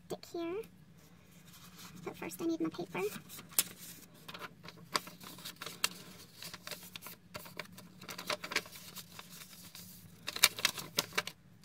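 Small objects tap and click against a hard tabletop.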